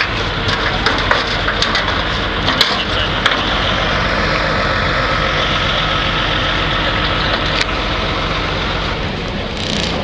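Wind rumbles hard outdoors.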